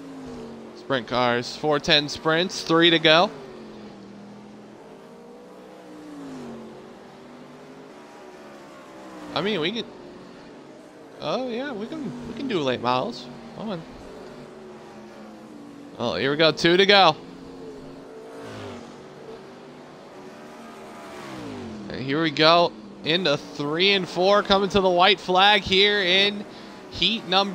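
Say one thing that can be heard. A race car engine drones and revs.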